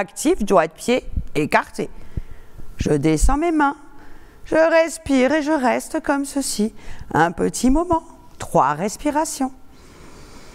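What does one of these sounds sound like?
An older woman speaks calmly and slowly, close by.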